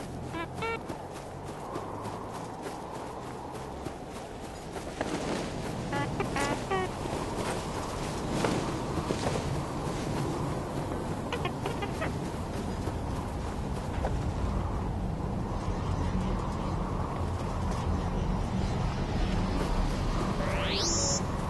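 Footsteps run across soft sand.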